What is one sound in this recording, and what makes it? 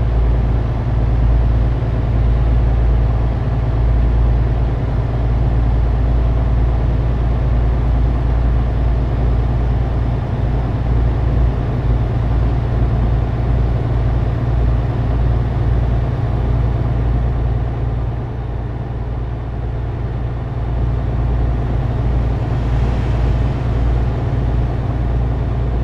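A truck engine drones steadily at highway speed.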